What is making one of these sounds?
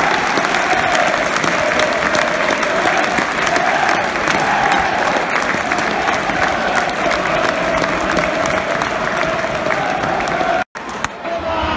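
A large stadium crowd sings and chants together loudly.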